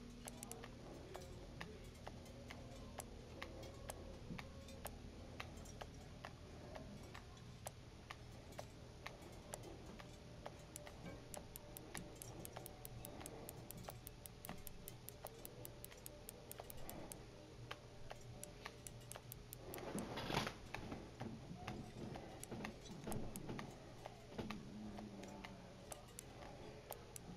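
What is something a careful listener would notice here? A fishing reel clicks quickly as line is wound in.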